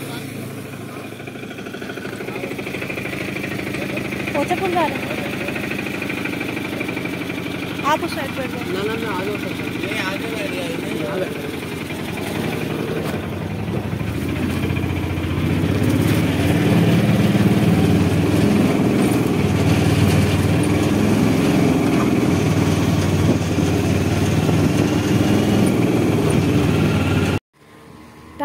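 An auto rickshaw engine rattles and hums steadily.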